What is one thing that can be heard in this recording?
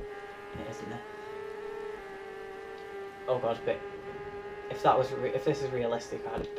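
A motorbike engine drones steadily at high revs.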